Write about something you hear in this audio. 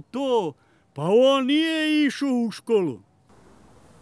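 An elderly man speaks slowly.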